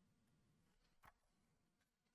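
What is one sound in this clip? Paper pages rustle as a page is turned.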